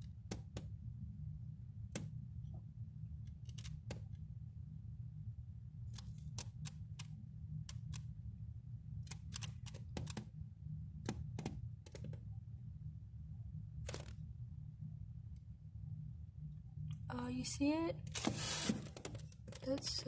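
A small flashlight taps lightly against eggshells with faint clicks.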